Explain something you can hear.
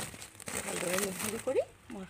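Loose soil pours from a bag onto the ground.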